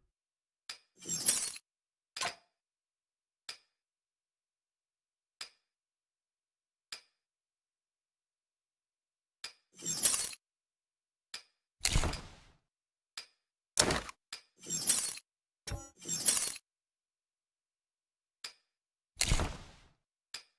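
Gear rustles and clatters in quick bursts as items are picked up.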